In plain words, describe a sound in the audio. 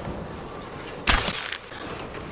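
An arrow whooshes from a bow with a sharp twang.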